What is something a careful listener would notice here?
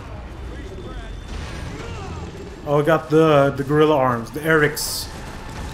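A man shouts a warning.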